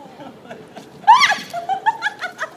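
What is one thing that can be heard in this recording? A young woman shrieks and laughs loudly close by.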